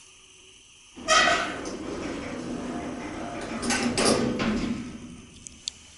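Elevator doors slide shut with a thump.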